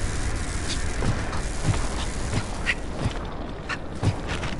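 Footsteps thud on stone at an even pace.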